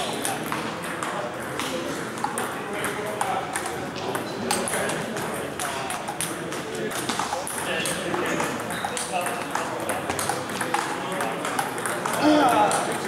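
Ping-pong balls click on tables and paddles throughout a large echoing hall.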